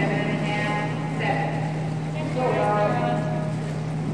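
Water splashes as a diver enters a pool.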